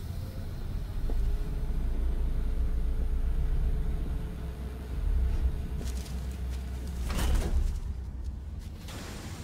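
A heavy metal vault door rumbles low and steadily.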